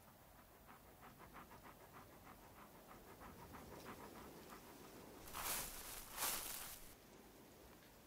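A rock strikes against another rock with sharp knocks.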